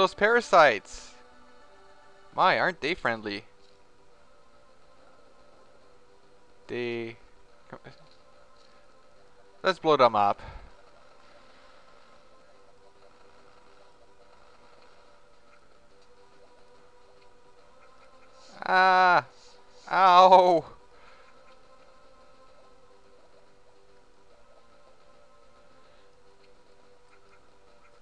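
Electronic game music plays softly throughout.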